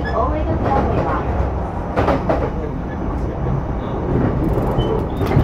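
A train hums and rumbles low and steadily.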